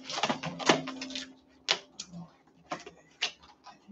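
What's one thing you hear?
Plastic wrap crinkles as it is handled.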